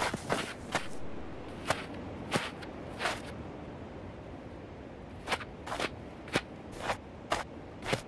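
Hooves crunch on snow as deer step about.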